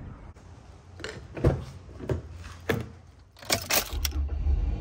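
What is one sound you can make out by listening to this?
Car door latch clicks and thumps.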